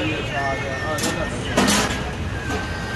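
A metal lid clanks against a pot.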